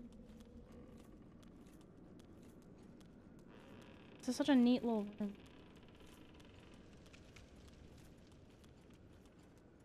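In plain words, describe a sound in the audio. Armoured footsteps clank softly on stone.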